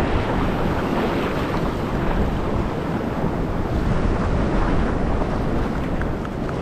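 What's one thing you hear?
Wind blusters outdoors.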